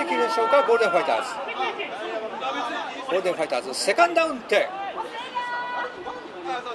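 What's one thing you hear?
A crowd of spectators chants and cheers outdoors.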